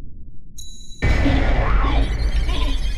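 A metal key is picked up with a loud clank.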